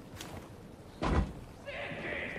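A heavy thud sounds as someone lands from a drop.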